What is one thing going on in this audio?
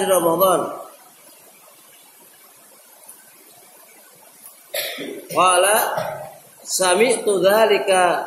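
A man chants loudly in a melodic voice, pausing between phrases.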